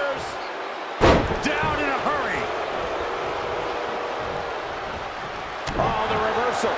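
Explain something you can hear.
Heavy thuds of bodies slamming onto a wrestling ring.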